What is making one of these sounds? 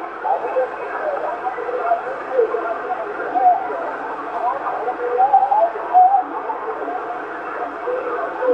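A radio receiver plays a muffled, crackling transmission through a small loudspeaker.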